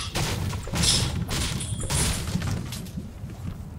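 A pickaxe strikes wood with sharp knocks.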